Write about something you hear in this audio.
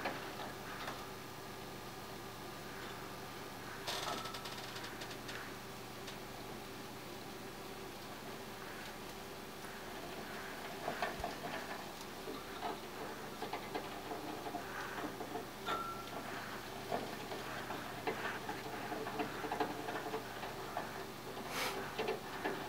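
Hamsters scurry inside a plastic exercise wheel, making it rattle and click.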